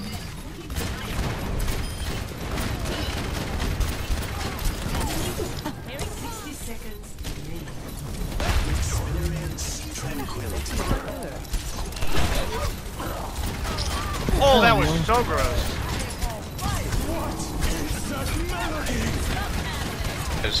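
Game pistol shots crack in quick bursts.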